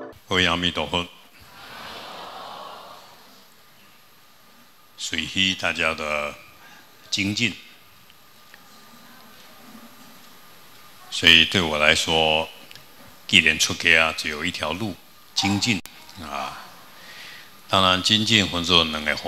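An elderly man speaks calmly and slowly into a microphone, in a large echoing hall.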